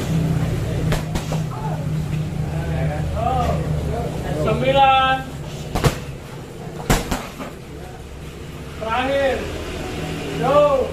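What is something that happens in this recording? Kicks and punches thud against heavy punching bags.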